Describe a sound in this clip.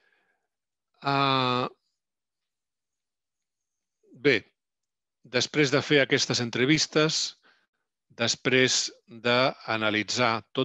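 A man speaks calmly through an online call, with pauses.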